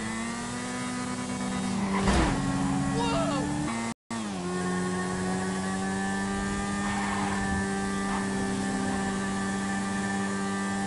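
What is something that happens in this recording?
A motorcycle engine drones steadily, its pitch dropping as it shifts gear.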